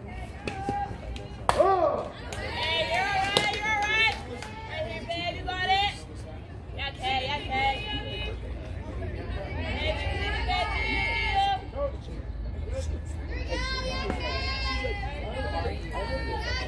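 Young women chant and cheer loudly nearby.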